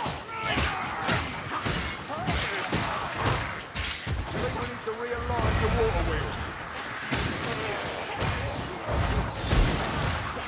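Flames whoosh and crackle in bursts.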